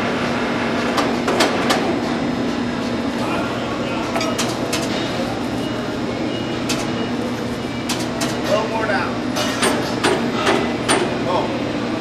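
Metal parts clank and knock sharply.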